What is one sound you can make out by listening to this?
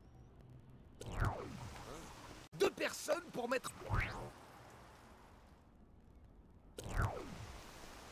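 A whooshing rush sweeps past.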